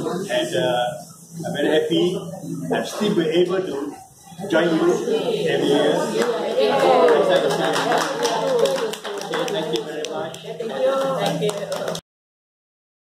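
An elderly man speaks with animation to a small crowd.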